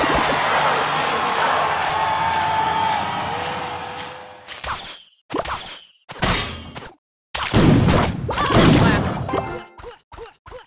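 Game sound effects of a battle clash and burst.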